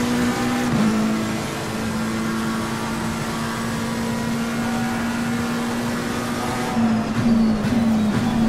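A racing car engine drones at high revs, steady and close.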